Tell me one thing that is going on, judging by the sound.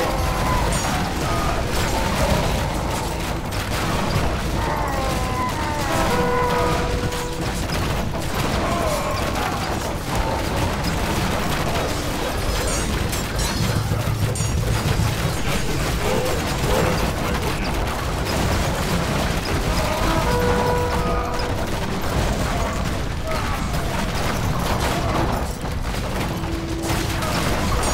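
Many swords clash and clatter in a busy battle.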